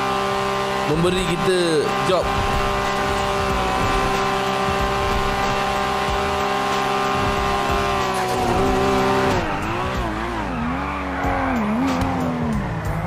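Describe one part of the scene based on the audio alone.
A sports car engine roars at high speed, then drops in pitch and revs up and down as the car slows.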